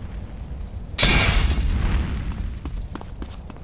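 A fire bursts into flames with a loud whoosh and crackles.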